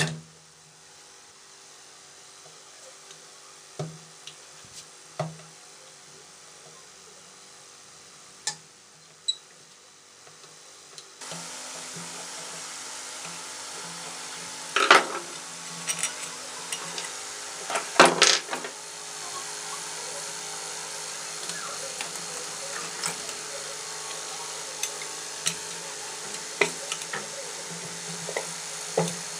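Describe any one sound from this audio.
Metal parts clink and knock against a motor casing.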